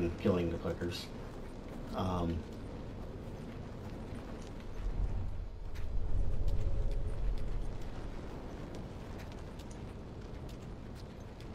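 Footsteps crunch slowly through snow.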